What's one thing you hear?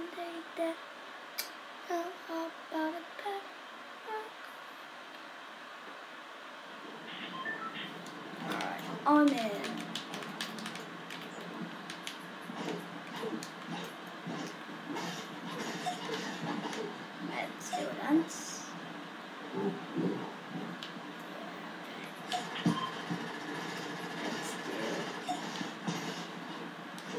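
Game music and sound effects play from a television speaker.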